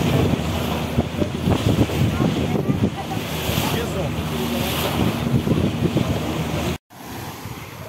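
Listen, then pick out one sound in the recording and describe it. Water rushes and splashes past a moving boat.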